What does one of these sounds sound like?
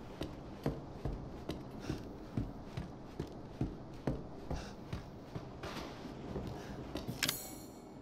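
Footsteps creak slowly on wooden floorboards.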